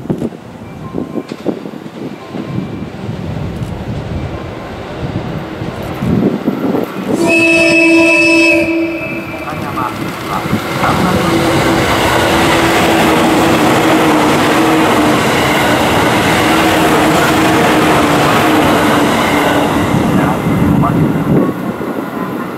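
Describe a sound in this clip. A train approaches and rumbles loudly past on the rails.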